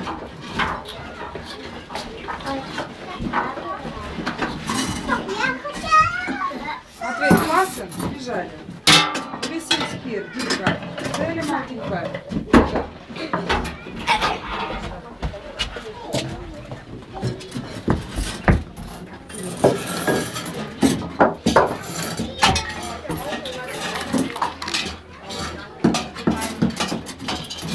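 Young children chatter and babble nearby.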